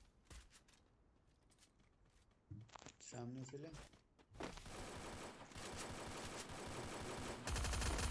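Footsteps run over grass and gravel.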